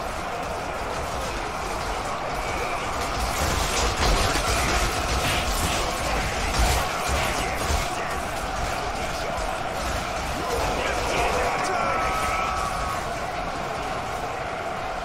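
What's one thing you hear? Swords and shields clash across a large battle.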